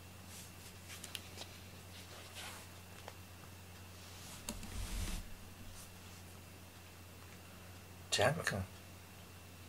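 Cat paws pad softly on a mat.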